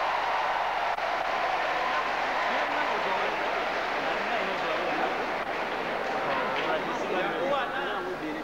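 A man speaks through a microphone and loudspeaker.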